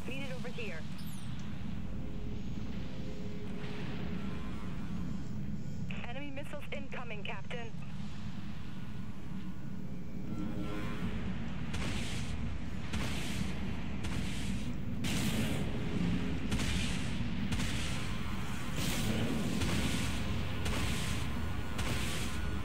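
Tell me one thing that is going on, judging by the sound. A game's engine hums with a low, steady rumble.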